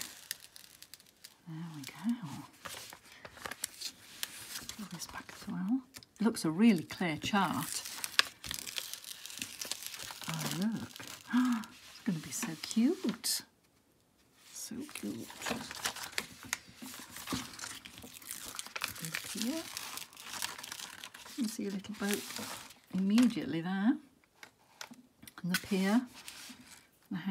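Plastic film crinkles and rustles as it is peeled back from a sheet.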